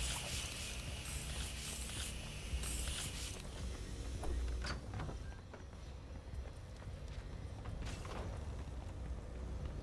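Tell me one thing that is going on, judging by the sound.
A pickaxe strikes metal and wood repeatedly.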